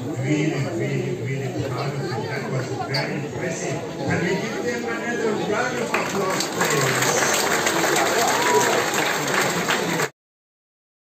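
A crowd chatters and cheers loudly in a large hall.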